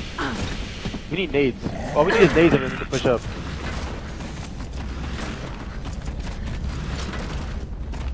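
Heavy boots run across the ground.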